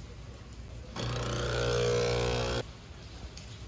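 A coffee machine hums loudly as it brews.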